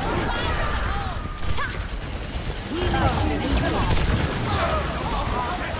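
Energy beams hum and crackle in a game battle.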